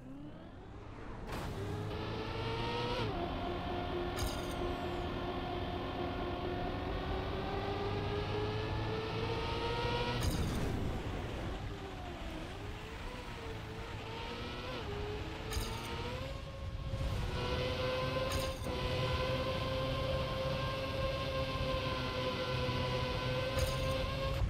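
A racing car engine whines loudly, its pitch rising and dipping as it speeds up and slows down.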